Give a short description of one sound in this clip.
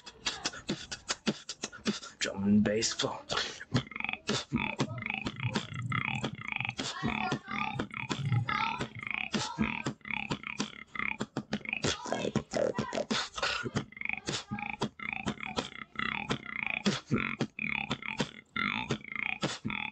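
A young man beatboxes rapidly into a microphone, with sharp clicks and hisses.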